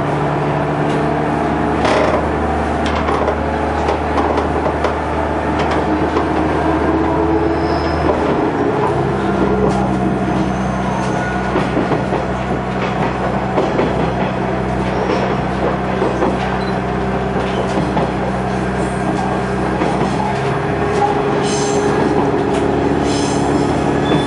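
A diesel engine drones steadily and shifts its pitch partway through.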